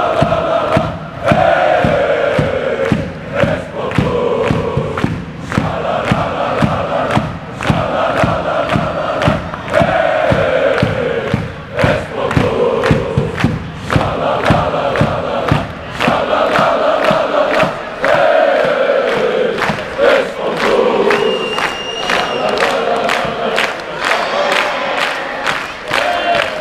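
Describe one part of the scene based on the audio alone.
A large crowd of fans chants loudly in unison in an echoing arena.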